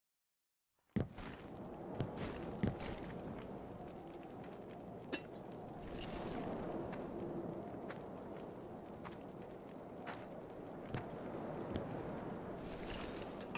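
Heavy footsteps crunch on dry ground.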